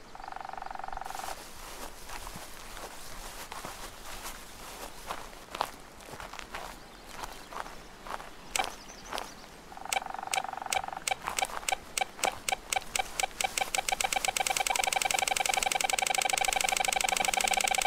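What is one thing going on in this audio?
Footsteps crunch on a dry path.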